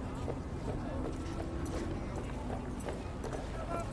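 Footsteps tap along a hard path.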